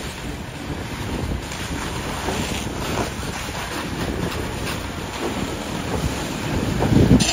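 A fire hose sprays water onto a burning car with a steady hiss.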